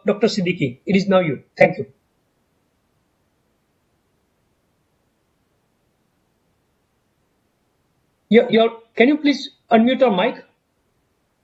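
A middle-aged man speaks calmly over an online call, in short bursts.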